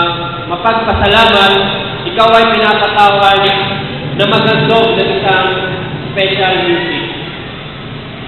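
A young man speaks into a microphone over loudspeakers, in a room with an echo.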